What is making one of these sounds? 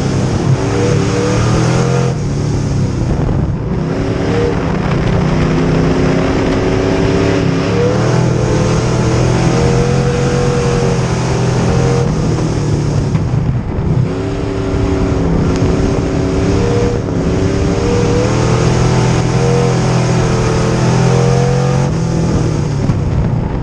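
A race car engine roars loudly up close, its pitch rising and falling as it revs.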